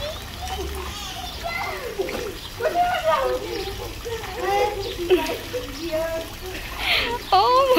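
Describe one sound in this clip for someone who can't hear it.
Water splashes and laps as a child paddles.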